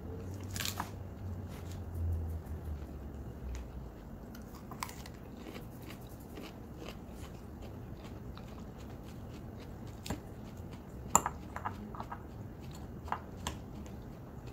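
A fork clinks and scrapes against a bowl.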